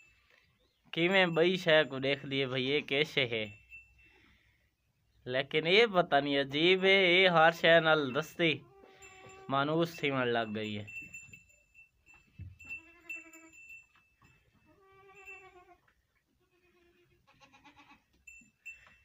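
A sheep bleats loudly and repeatedly, with a long quavering cry.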